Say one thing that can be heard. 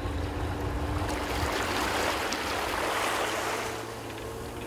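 A group of people cheer and shout from a boat.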